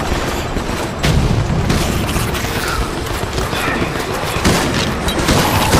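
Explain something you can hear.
Gunshots ring out close by.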